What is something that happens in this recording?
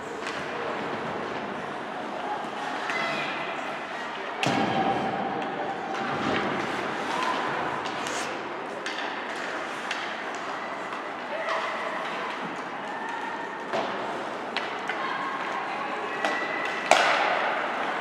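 Ice skates scrape and hiss across an ice rink.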